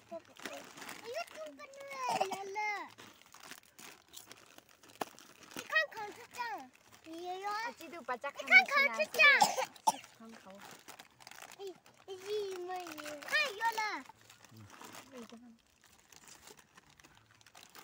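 Plastic snack packets crinkle as they are opened.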